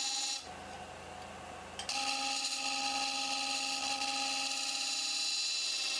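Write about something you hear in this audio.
A chisel scrapes and hisses against spinning wood.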